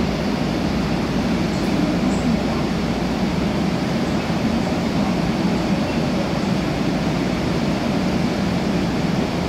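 A subway train hums steadily while stopped at a platform.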